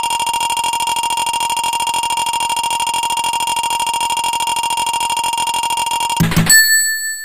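A rapid electronic beeping ticks steadily as a game score counts up.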